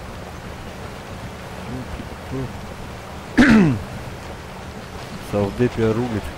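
A truck engine rumbles and strains at low speed.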